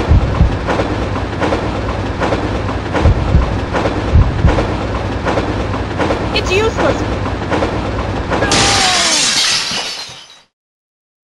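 A train rattles rhythmically along the tracks.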